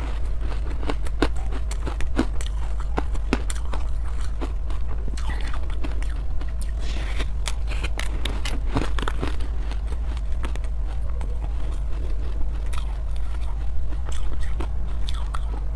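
Plastic packaging crinkles close by.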